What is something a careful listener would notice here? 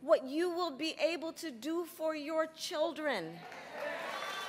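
A woman speaks emphatically into a microphone over loudspeakers.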